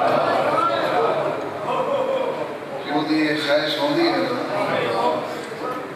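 A man speaks passionately into a microphone, heard through loudspeakers.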